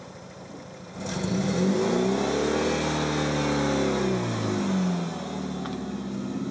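A car engine starts and revs, then rumbles steadily as the car pulls away.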